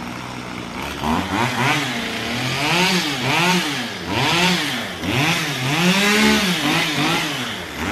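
A chainsaw revs up and down repeatedly as it cuts wood.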